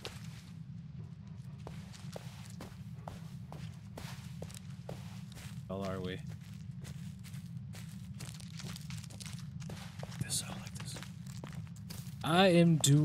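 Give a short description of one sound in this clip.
Footsteps crunch steadily over leaves and twigs.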